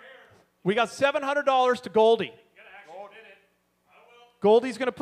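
A man sings loudly into a microphone, heard through loudspeakers.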